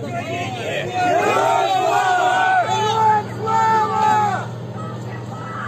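A man shouts loudly close by.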